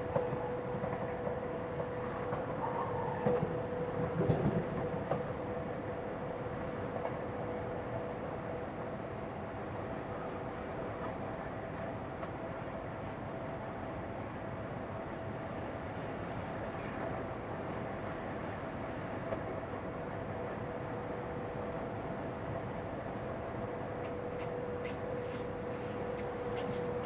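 A train rumbles steadily along the rails with a steady humming whine.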